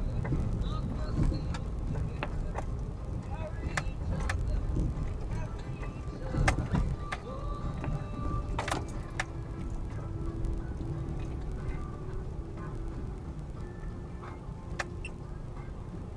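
Tyres rumble and crunch over a bumpy dirt road.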